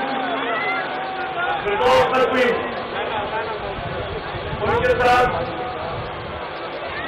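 A man gives a speech forcefully through a microphone and loudspeakers.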